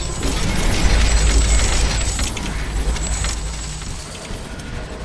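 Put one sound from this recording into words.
A deep electronic rumble hums.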